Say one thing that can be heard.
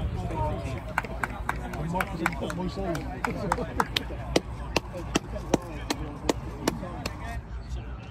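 People clap their hands in steady applause.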